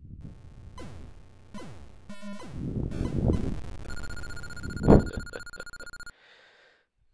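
Electronic laser zaps and falling tones of a retro video game play.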